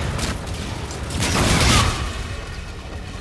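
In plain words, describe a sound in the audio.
Flames burst with a loud whoosh.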